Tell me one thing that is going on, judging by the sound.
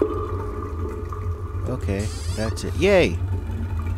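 A small wooden cabinet door creaks open.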